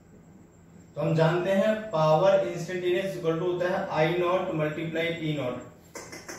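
A man speaks calmly close by, explaining.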